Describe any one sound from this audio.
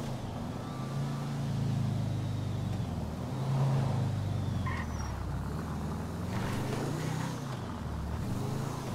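Tyres roll and skid on the road.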